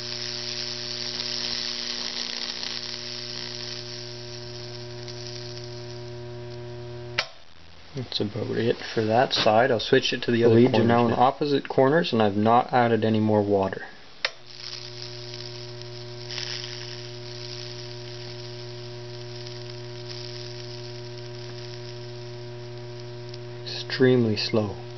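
Wood sizzles and crackles as electricity burns through it.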